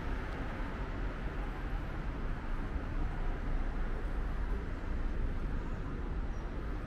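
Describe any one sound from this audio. Wind blows steadily outdoors with a low rumble.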